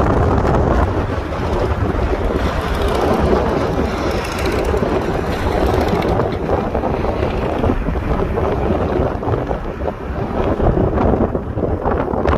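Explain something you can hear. Wind rushes and buffets past an open car window.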